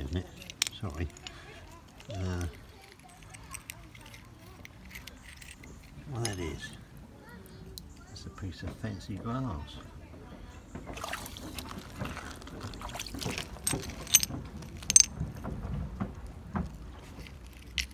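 Small stones clink and rattle as a hand picks through them.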